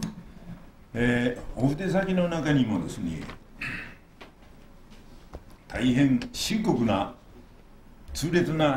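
An elderly man speaks calmly into a microphone in an echoing hall.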